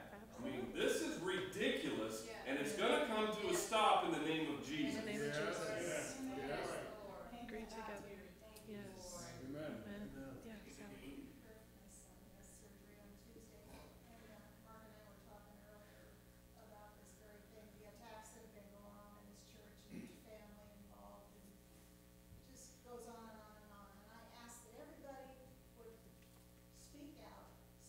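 A woman speaks calmly into a microphone in a room with echo.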